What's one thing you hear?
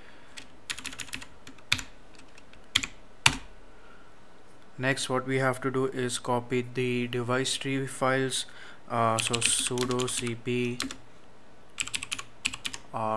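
Keys clatter on a computer keyboard in quick bursts.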